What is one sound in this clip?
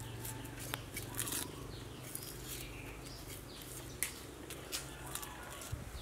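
A knife scrapes and peels the skin of a shallot.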